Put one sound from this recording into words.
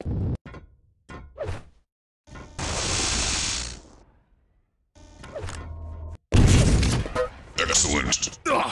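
A spinning blade weapon whirs in bursts.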